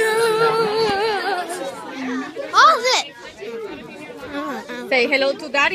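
Children talk and shout excitedly close by.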